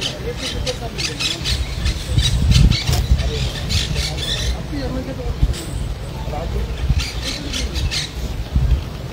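A woman speaks with emotion into a microphone, heard over a loudspeaker outdoors.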